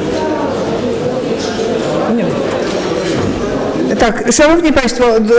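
A crowd of people murmurs and talks in a large echoing hall.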